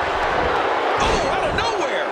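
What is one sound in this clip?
A body slams onto the wrestling ring mat with a heavy thud.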